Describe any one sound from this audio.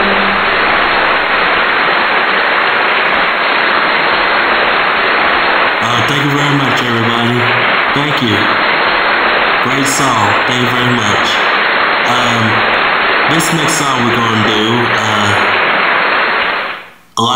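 An electric guitar plays.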